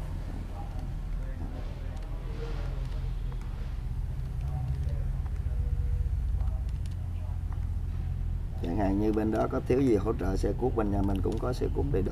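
A man presses calculator keys with soft clicks.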